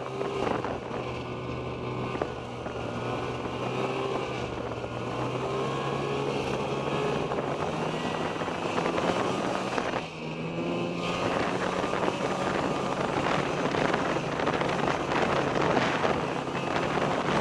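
Snow hisses and crunches under the snowmobile's tracks.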